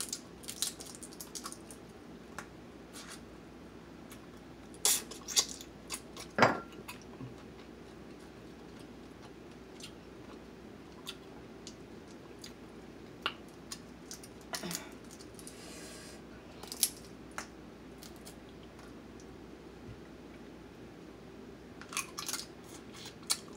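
Crab shells crack and snap up close.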